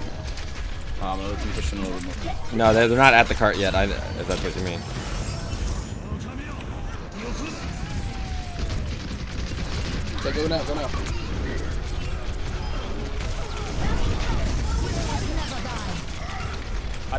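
Keyboard keys and a mouse click rapidly.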